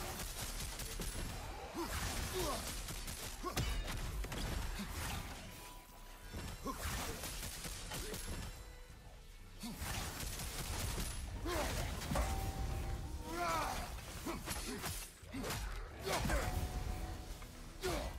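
Magic blasts burst with crackling bangs.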